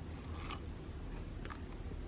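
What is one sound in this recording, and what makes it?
Milk pours into a bowl of cereal.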